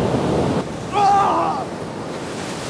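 A young man speaks briefly.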